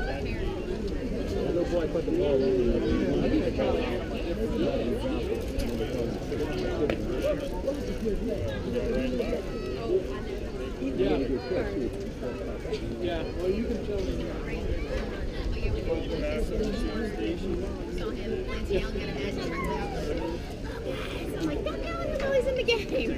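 Men and boys chatter nearby outdoors.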